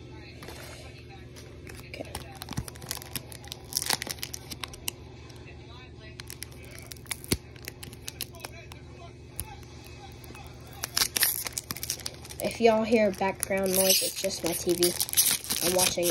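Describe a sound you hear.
A foil wrapper crinkles and tears as hands open a pack.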